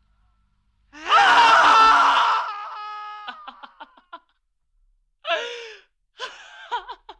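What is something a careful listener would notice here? A young boy screams and wails loudly.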